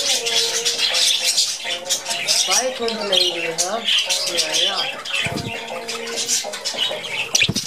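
Budgerigars chatter and chirp busily close by.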